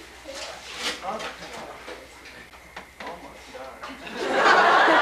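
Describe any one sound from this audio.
Young people talk and laugh nearby.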